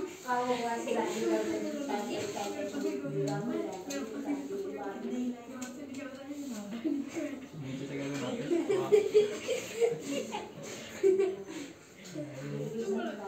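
Young children read aloud and talk nearby.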